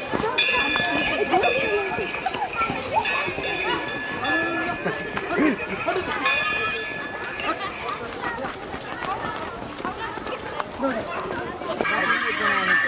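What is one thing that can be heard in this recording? A crowd of men and women chatters and calls out close by, outdoors.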